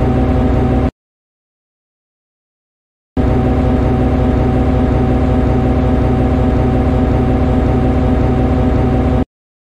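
A diesel locomotive engine idles with a steady low rumbling hum.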